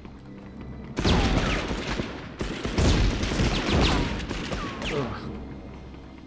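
A shotgun fires several loud blasts that echo and ring out.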